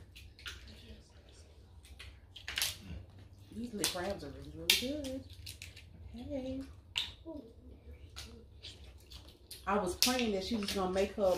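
Food crunches and clicks as women eat seafood with their hands.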